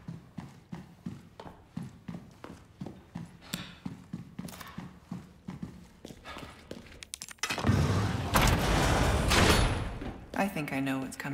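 Footsteps tap quickly and evenly on a hard stone floor.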